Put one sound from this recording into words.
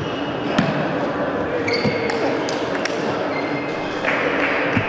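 A table tennis ball clicks back and forth on paddles and the table.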